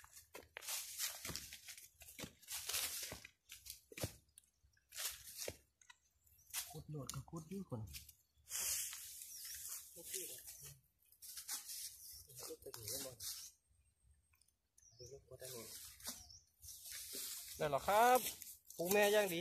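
Metal tools scrape and crunch into dry leaves and soil.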